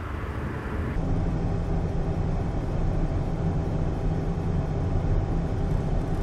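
Road noise rumbles inside a car at speed.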